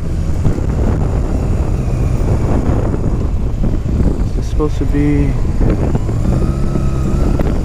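Wind buffets loudly against the rider.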